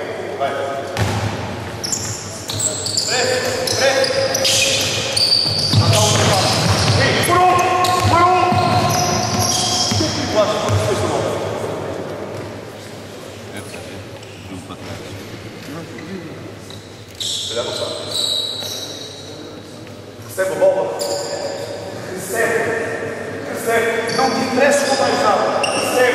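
A crowd of young spectators chatters in the background.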